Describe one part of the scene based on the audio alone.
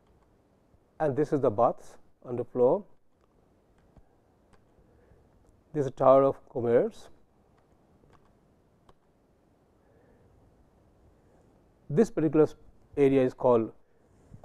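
A man lectures calmly into a close microphone, in short phrases with pauses.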